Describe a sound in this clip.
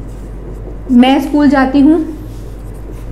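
A young woman speaks briefly and clearly, close by.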